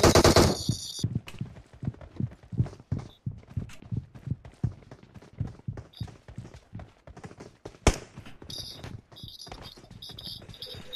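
Footsteps thud quickly as a person runs.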